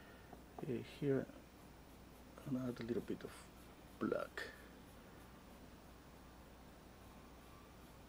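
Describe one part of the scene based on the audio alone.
A paintbrush brushes softly against canvas.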